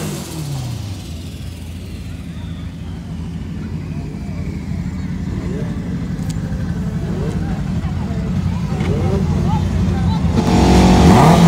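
A race car engine idles with a rough, loping rumble.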